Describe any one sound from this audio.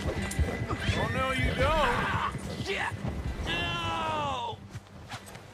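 A man shouts in alarm close by.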